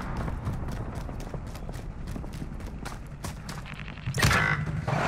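Footsteps crunch quickly on snow and gravel.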